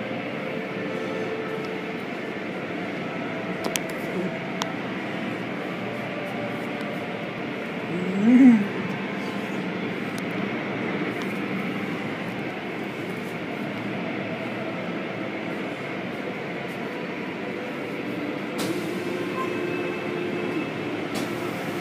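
Jets of water spray and drum steadily against a car.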